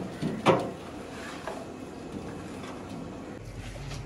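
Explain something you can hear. A man wipes a metal bench top with a cloth.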